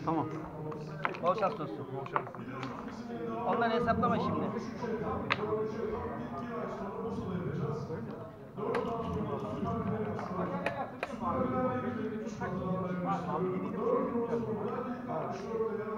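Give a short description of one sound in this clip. Backgammon checkers click against the board.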